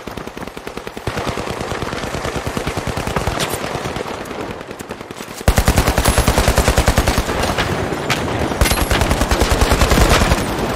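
A rifle fires in rapid, rattling bursts.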